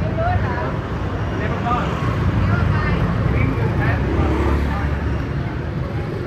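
Motor scooters rumble past on a busy street.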